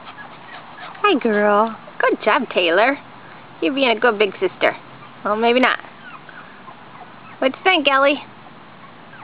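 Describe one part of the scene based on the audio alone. Puppies yelp and whine loudly in short bursts.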